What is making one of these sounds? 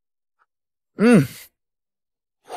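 A young man hums an approving murmur with his mouth full.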